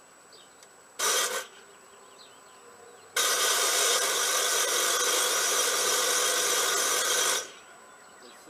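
A small engine's starter cranks loudly.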